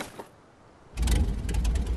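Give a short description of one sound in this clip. A propeller plane's engine starts up and drones.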